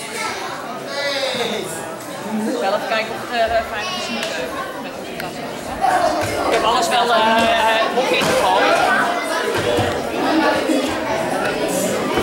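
Many children chatter and talk at once in a large echoing hall.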